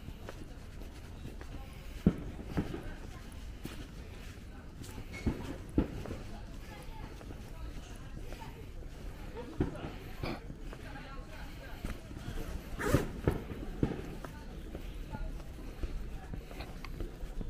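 Footsteps tap on a paved path outdoors.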